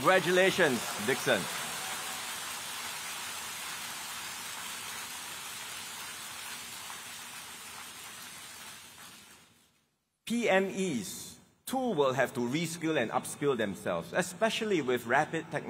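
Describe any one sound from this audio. A man speaks steadily into a microphone, with pauses.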